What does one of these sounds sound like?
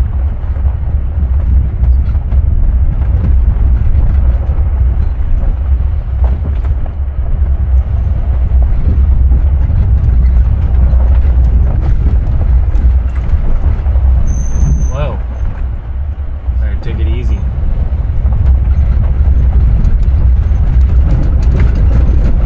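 A vehicle engine rumbles steadily while driving.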